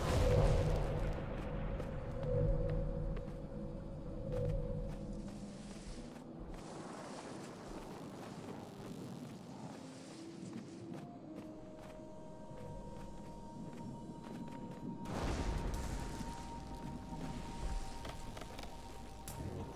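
Soft game music plays throughout.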